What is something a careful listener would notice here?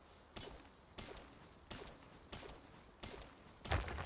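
A pickaxe strikes rock with sharp clinks.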